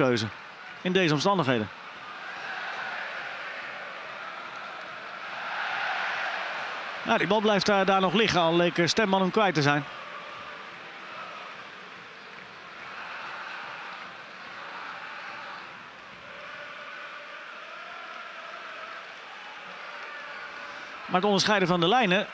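A large crowd murmurs and chants steadily in a big open stadium.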